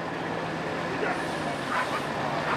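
A small crowd of adults calls out farewells outdoors.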